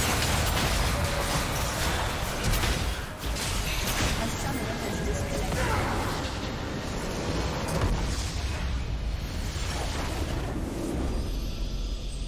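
Game spell effects and attacks crash and clash loudly.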